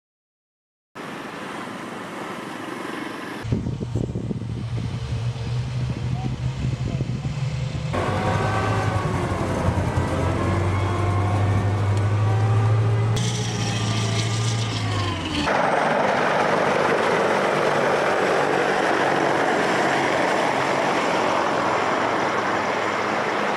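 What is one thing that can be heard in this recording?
Small waves wash onto a beach.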